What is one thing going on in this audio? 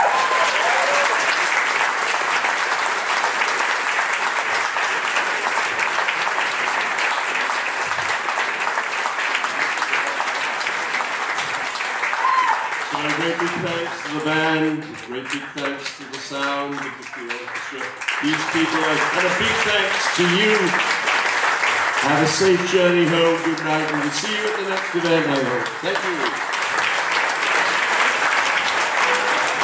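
An audience applauds and cheers loudly in an echoing hall.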